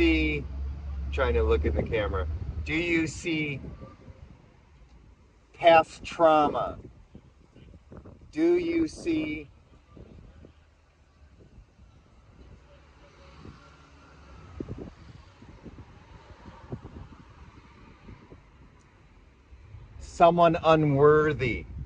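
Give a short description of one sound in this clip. A middle-aged man talks with animation close by, outdoors.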